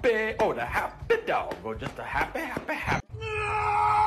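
A dog yelps excitedly.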